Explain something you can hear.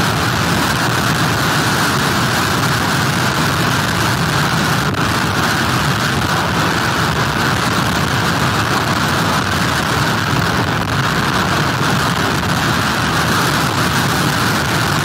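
Heavy surf crashes and churns nearby.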